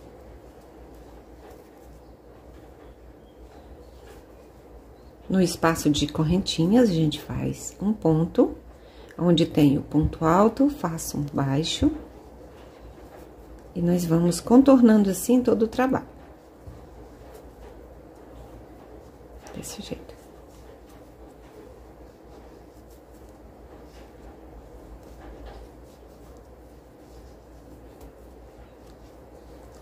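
A crochet hook softly rustles and pulls through thick cord.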